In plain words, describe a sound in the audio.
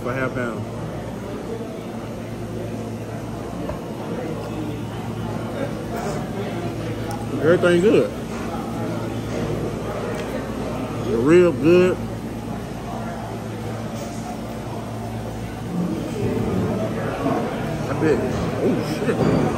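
A young man chews food noisily.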